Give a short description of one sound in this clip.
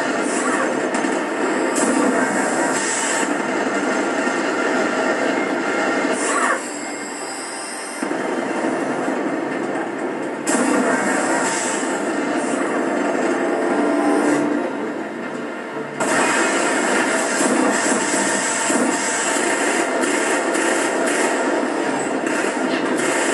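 Gunfire and explosions from a video game play loudly through television speakers.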